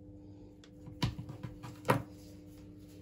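Something is set down on a table with a few sharp knocks.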